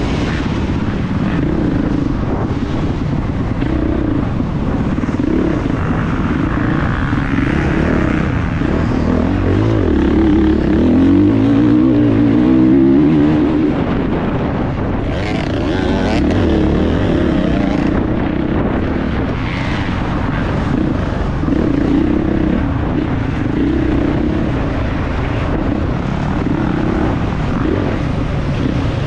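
A dirt bike engine buzzes and revs up close.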